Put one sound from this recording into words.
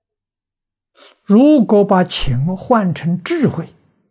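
An elderly man speaks calmly and closely into a microphone.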